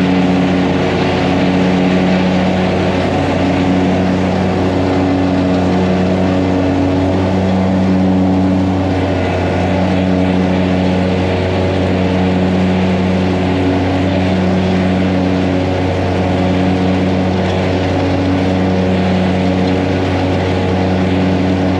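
Mower blades cut through grass.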